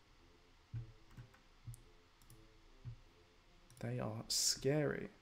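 A man speaks into a microphone, quietly at first and then louder with animation.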